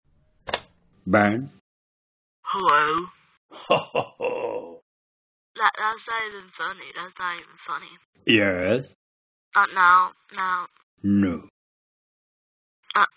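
A cartoon male voice talks animatedly into a telephone, close by.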